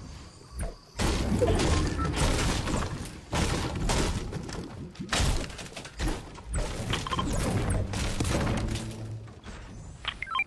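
A pickaxe strikes wood and metal again and again with loud thuds.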